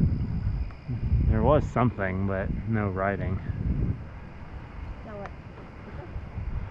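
Wind rumbles against the microphone of someone riding a bicycle outdoors.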